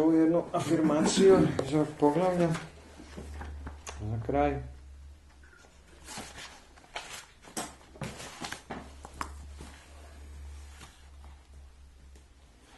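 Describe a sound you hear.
Paper pages rustle and flip.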